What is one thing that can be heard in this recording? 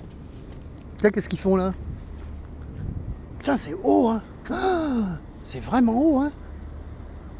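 A middle-aged man speaks casually nearby.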